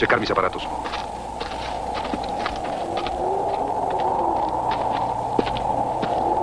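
A man speaks in a low voice.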